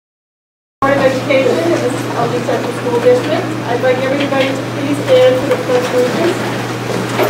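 A man speaks calmly to a room.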